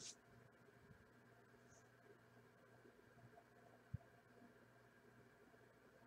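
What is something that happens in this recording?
Hands quietly handle cards on a table.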